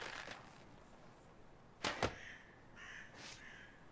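A small box is set down on a shelf with a soft knock.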